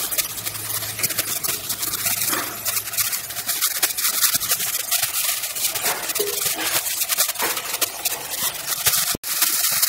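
A metal ladle scrapes and stirs against the pot.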